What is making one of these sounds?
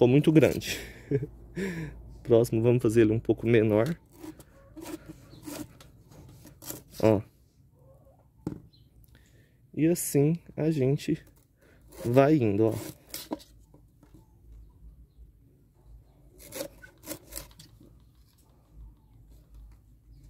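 A knife cuts through a plastic tube.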